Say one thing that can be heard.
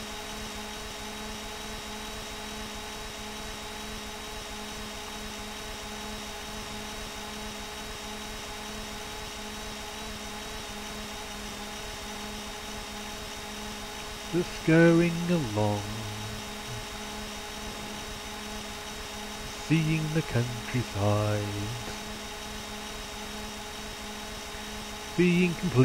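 A motorcycle engine hums steadily at a constant speed.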